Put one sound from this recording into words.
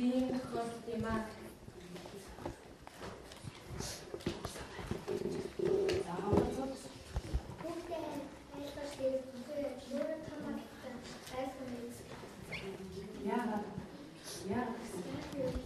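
A young girl speaks steadily.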